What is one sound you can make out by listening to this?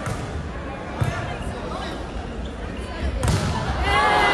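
A volleyball is smacked with sharp slaps.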